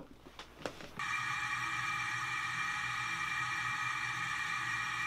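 A shower sprays water steadily.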